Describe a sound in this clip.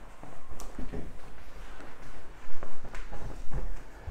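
Legs shift and thump softly on a padded surface.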